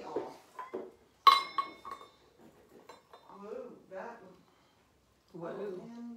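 A spoon clinks against glass.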